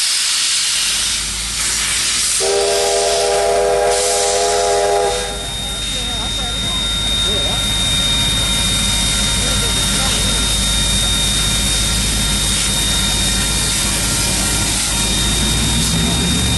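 A steam locomotive chuffs heavily as it pulls away.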